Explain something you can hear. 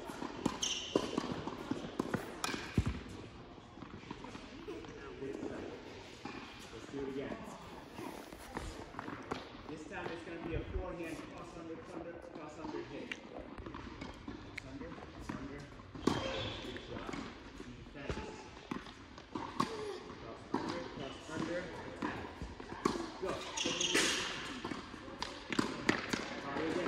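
Tennis balls are struck with a sharp pop of a racket, echoing in a large hall.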